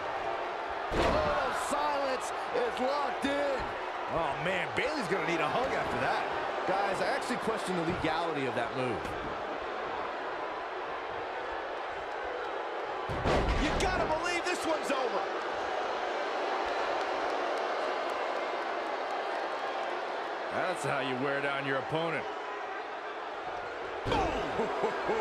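Heavy bodies slam hard onto a wrestling mat.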